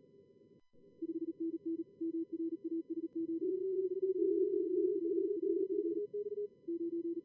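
Morse code beeps in overlapping tones over radio hiss.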